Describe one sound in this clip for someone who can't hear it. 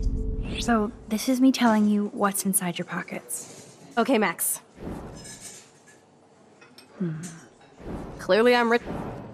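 A young woman asks a question calmly, close by.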